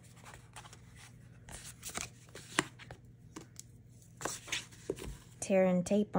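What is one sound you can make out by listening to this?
Paper rustles and creases as it is folded by hand.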